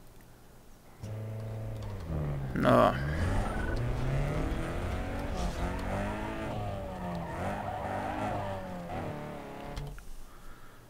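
A car engine hums and revs as a car drives along.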